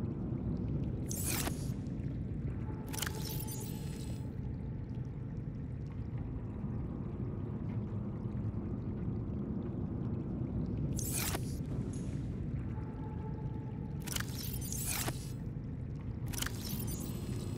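A storage locker door opens and closes with short whooshing sweeps.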